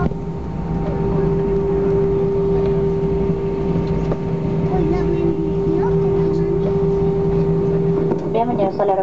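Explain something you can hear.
Jet engines roar steadily from inside the cabin, then quieten.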